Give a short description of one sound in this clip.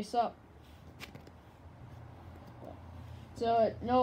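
A card is slid and set down on a cloth-covered table.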